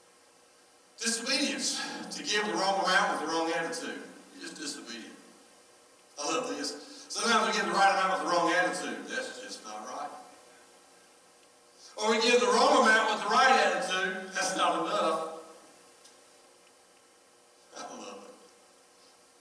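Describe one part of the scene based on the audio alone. An elderly man speaks calmly through a microphone in a large echoing hall.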